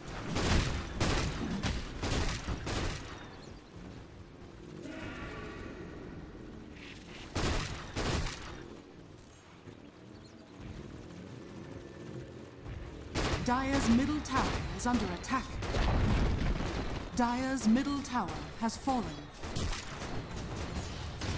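Fantasy spells crackle and boom as fighters clash.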